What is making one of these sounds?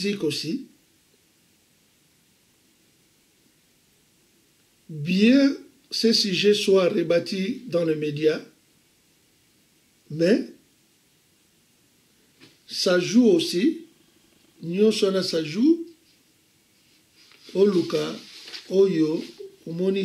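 An elderly man speaks slowly and calmly close to a microphone, with long pauses.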